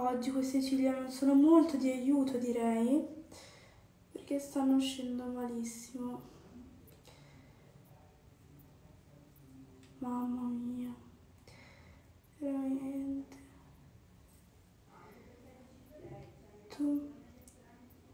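A teenage girl speaks softly close by, in short bursts.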